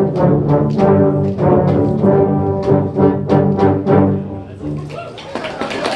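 A brass band plays a loud, held chord, then stops.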